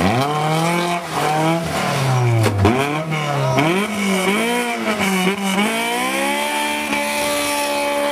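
Tyres squeal and scrabble on a tarmac road.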